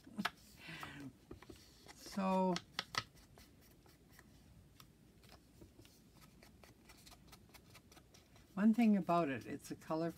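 Paper crinkles and tears softly between fingers.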